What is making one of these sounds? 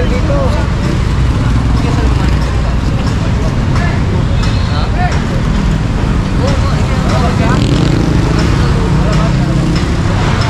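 Traffic rumbles steadily outdoors on a busy street.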